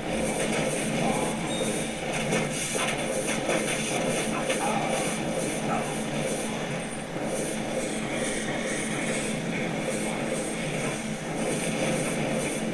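Fire spells crackle and burst in rapid bursts.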